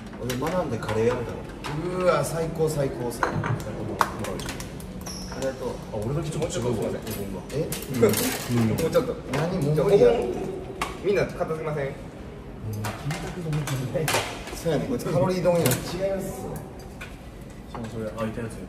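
Dishes and chopsticks clink on a table.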